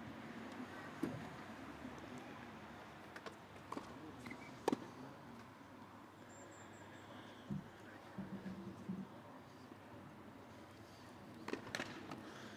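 A tennis racket strikes a ball with a sharp pop, now and then.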